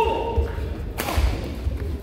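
A racket strikes a shuttlecock with a sharp crack.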